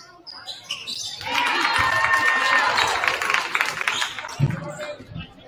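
A crowd cheers loudly in a large echoing gym.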